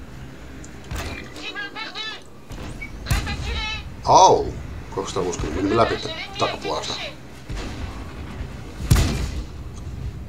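A tank cannon fires with a deep boom.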